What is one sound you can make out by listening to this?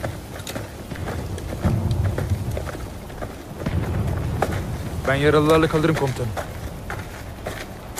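Boots tread on dirt as soldiers walk past.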